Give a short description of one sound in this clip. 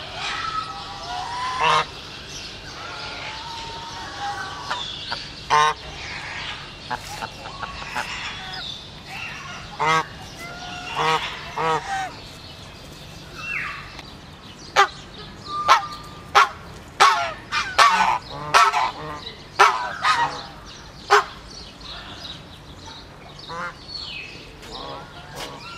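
Geese honk loudly and repeatedly close by.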